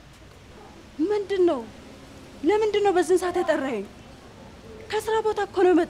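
A young woman speaks close by in a pleading, emotional tone.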